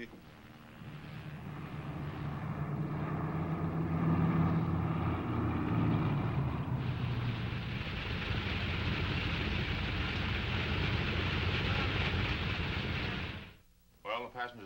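A propeller plane's engines roar loudly and steadily.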